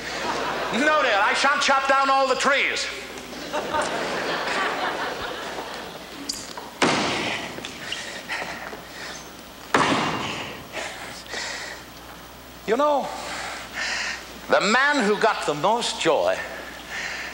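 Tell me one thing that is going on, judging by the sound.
An elderly man speaks loudly and with animation.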